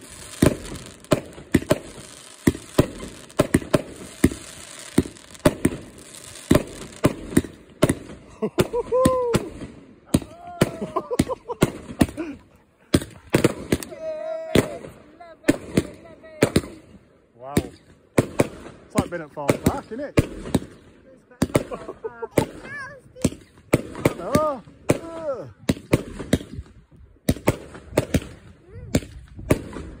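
Fireworks bang and crackle in quick bursts outdoors.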